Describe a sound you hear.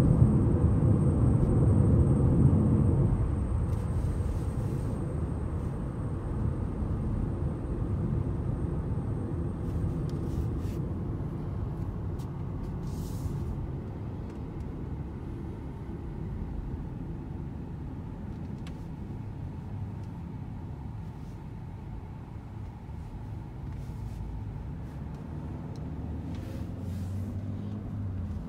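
A car engine hums low and steady from inside as it drives along a road.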